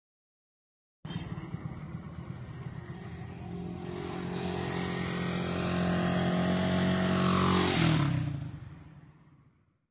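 A motorcycle engine approaches, roars past close by and fades away.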